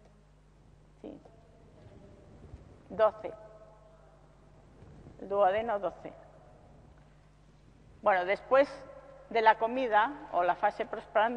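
A middle-aged woman speaks calmly and slowly, close to a microphone.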